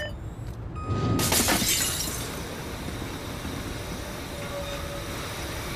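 A hydraulic lift platform whirs as it rises.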